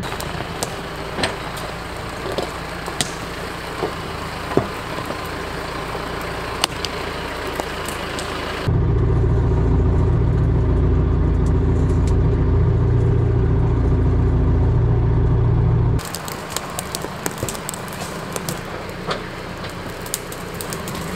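A compact tractor engine runs outdoors.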